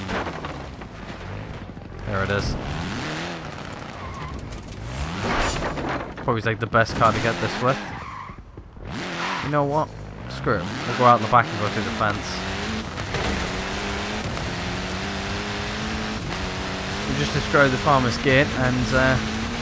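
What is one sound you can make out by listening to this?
Tyres crunch and skid over snow and gravel.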